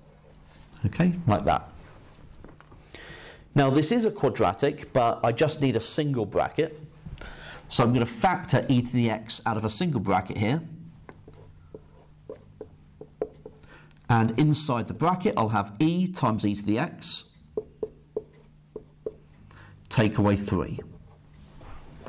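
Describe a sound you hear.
A man explains calmly, close to a microphone, in short bursts.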